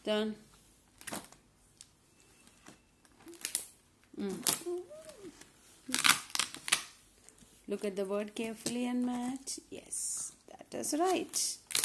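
Stiff laminated pages flip and rustle.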